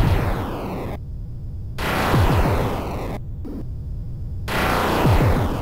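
Arcade game explosions rumble and roar with falling whooshes.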